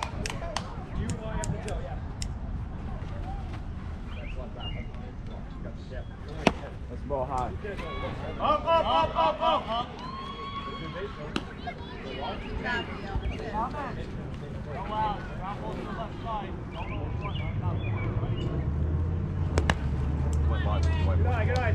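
Children's voices call and cheer outdoors.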